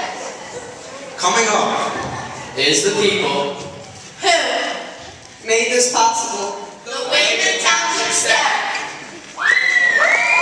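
A teenage boy speaks with animation through a microphone in a large echoing hall.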